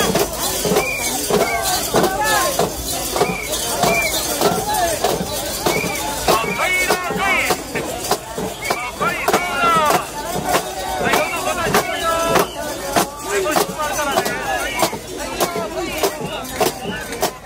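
A crowd of men chants loudly in rhythm outdoors.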